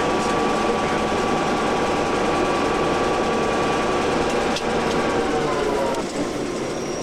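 A small locomotive engine drones steadily.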